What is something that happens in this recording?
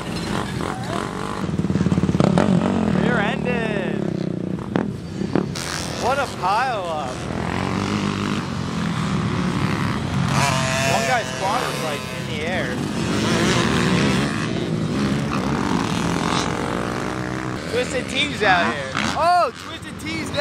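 A quad bike engine revs loudly nearby.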